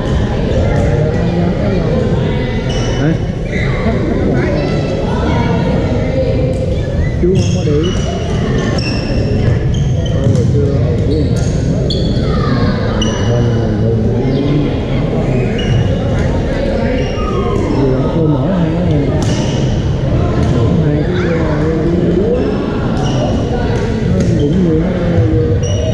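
Paddles hit a plastic ball with sharp pops in a large echoing hall.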